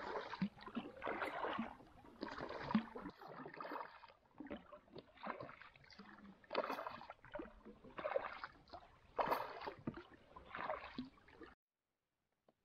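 A kayak paddle dips and splashes into calm water in rhythmic strokes.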